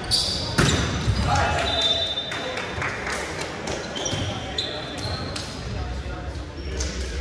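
A volleyball is struck with sharp slaps in a large echoing gym.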